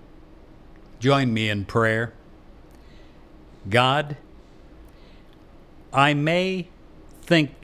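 An elderly man speaks close to a microphone in short, calm phrases with pauses.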